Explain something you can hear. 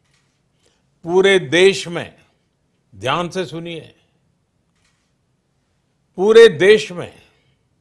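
An elderly man speaks slowly and firmly into a close microphone, with long pauses.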